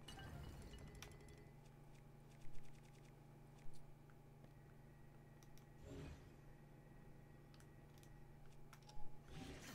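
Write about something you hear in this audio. Soft clicks and ticks sound as a game menu is scrolled.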